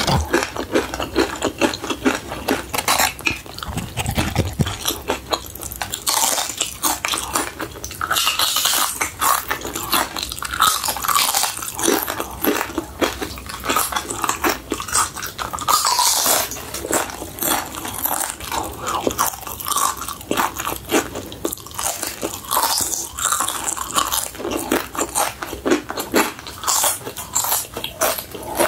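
A young woman chews with wet, smacking mouth sounds close to a microphone.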